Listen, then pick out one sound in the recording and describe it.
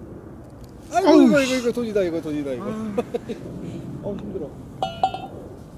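Men exclaim and talk loudly outdoors.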